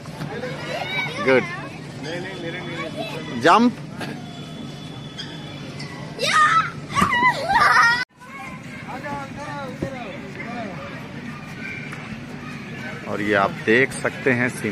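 Young children shout and squeal with excitement nearby.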